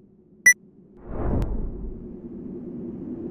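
A low fire rumble roars.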